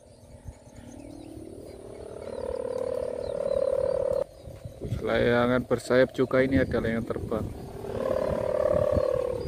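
A kite's hummer drones steadily overhead, swelling and fading.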